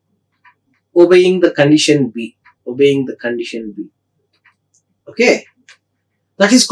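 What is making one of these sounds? A man lectures calmly into a close microphone, in short phrases with pauses.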